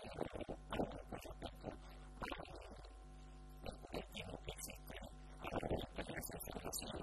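A middle-aged man speaks calmly and steadily through a headset microphone.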